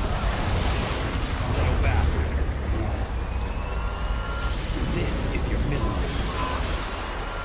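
Sword strikes slash and clang rapidly.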